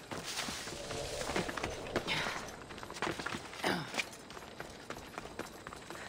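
Hands and feet scrape against rock while climbing.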